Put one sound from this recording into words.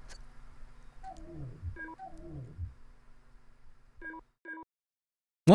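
Short electronic menu chimes sound as selections are made.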